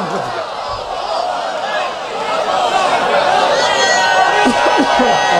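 A large crowd of men chants loudly together.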